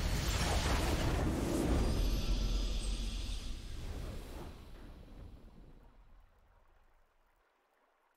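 A triumphant victory fanfare swells, then slowly fades out.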